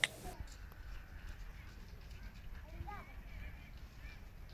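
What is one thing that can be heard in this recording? Children talk quietly nearby, outdoors.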